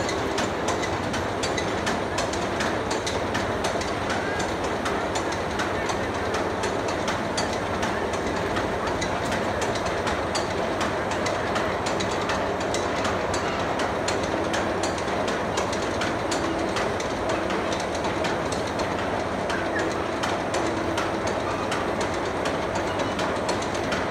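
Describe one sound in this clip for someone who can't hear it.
A roller coaster train clatters steadily up a chain lift outdoors.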